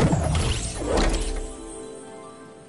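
A loud whooshing burst sounds as a glider opens.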